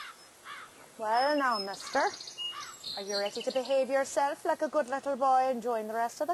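A woman speaks nearby, calmly and clearly.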